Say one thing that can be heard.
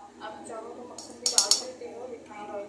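A metal spoon clinks against a pan.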